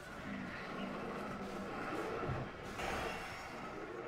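Magic spells whoosh and crackle as a large creature is struck.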